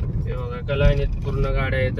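A car engine hums while driving along a road.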